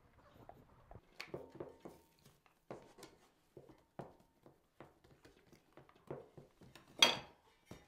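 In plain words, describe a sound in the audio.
Dough pats and slaps softly on a wooden board.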